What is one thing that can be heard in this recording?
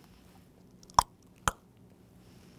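A small box lid clicks open and shut.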